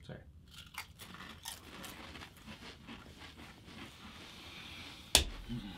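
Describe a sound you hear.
Men crunch crisps while chewing loudly.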